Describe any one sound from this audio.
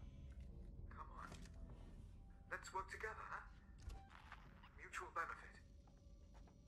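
A young man talks quietly into a microphone, close by.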